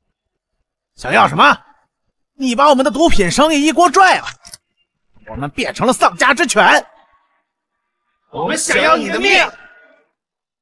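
A middle-aged man speaks with a sneer.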